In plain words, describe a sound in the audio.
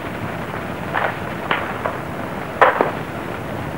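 A gun fires several sharp shots.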